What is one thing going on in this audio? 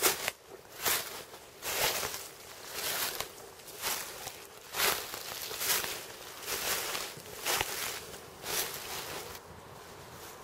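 Footsteps crunch through dry leaves outdoors.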